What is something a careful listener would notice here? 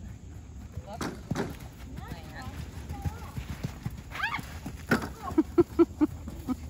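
A horse's hooves thud on soft dirt at a canter.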